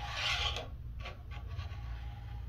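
Metal pins click softly as a hand moves them in a holder.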